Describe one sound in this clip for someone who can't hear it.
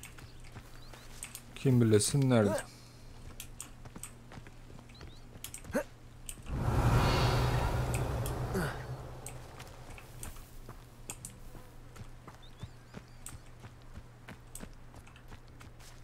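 Footsteps run over grass and rock.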